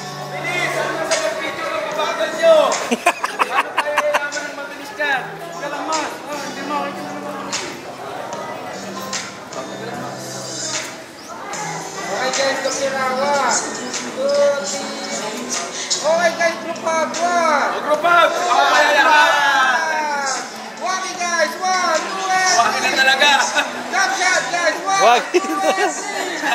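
Young men talk and laugh loudly nearby.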